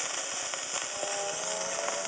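Faint old music plays from the gramophone record.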